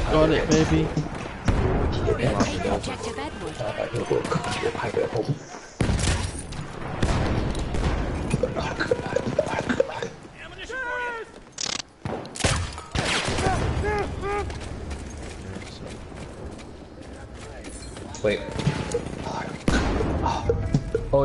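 Gunshots crack and echo loudly.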